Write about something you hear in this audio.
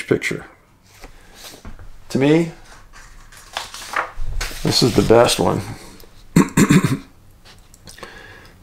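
Sheets of paper rustle as they are shuffled.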